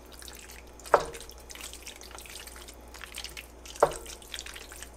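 A wooden spoon knocks against the side of a metal pot.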